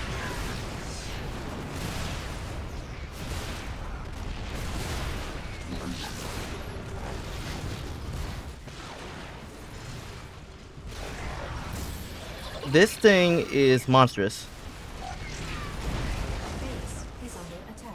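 Weapons fire in a video game battle.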